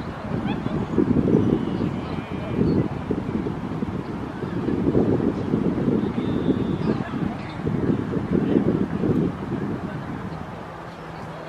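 Wind gusts outdoors, buffeting with a low rumble.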